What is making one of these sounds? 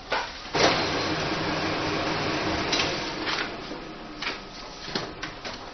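A photocopier hums and whirs as it copies.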